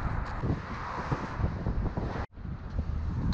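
A car passes by on the road.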